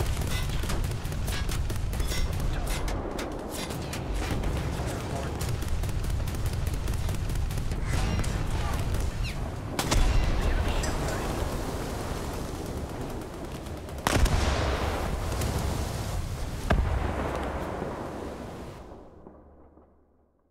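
Water rushes and splashes against a ship's hull.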